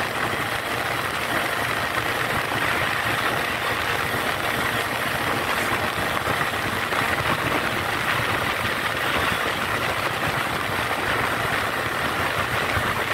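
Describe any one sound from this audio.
Wind buffets loudly and steadily, as if rushing past while riding.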